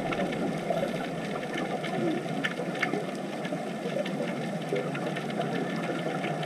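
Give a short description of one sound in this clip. Air bubbles from divers gurgle and burble steadily underwater.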